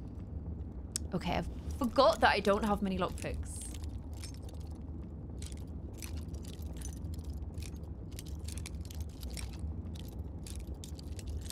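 A lockpick scrapes and clicks faintly in a lock.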